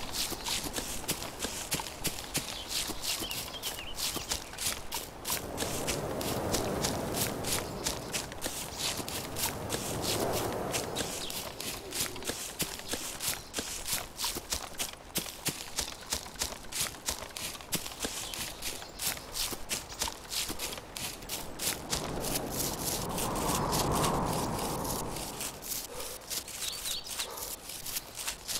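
Footsteps run quickly over grass and brush.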